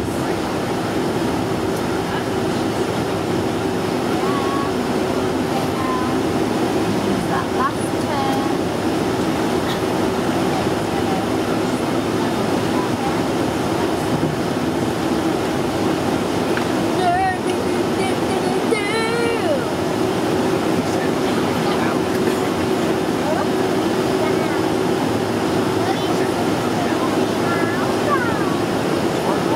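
Jet engines roar steadily from inside an airliner cabin.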